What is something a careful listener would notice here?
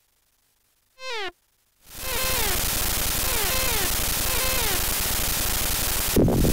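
Short electronic bleeps fall quickly in pitch.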